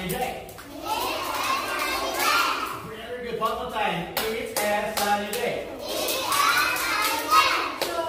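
Young children clap their hands.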